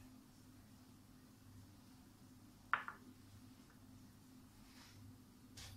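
A pastry brush dabs softly on soft dough.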